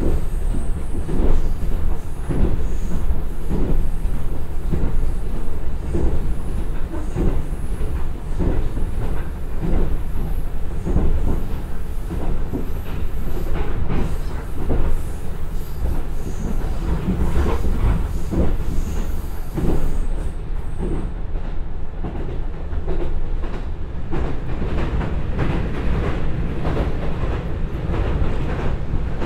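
A diesel railcar engine rumbles steadily.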